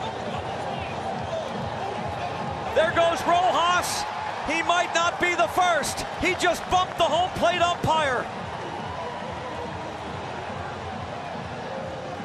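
A stadium crowd murmurs in the background.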